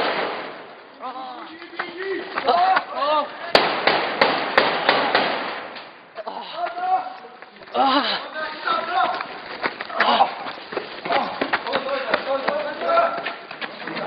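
Men shout loudly and urgently nearby.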